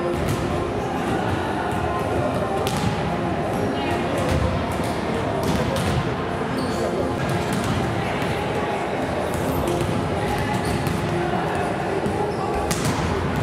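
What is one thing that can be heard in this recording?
Teenage girls chatter and laugh nearby in a large echoing hall.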